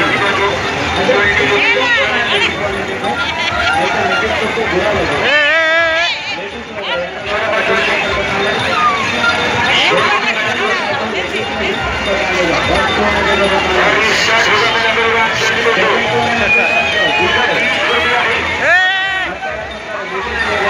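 A large outdoor crowd of men and women chatters loudly all around.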